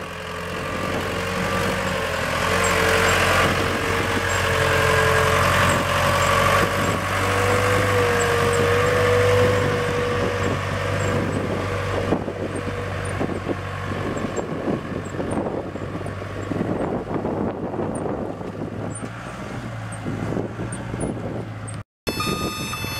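Tyres crunch over gravel.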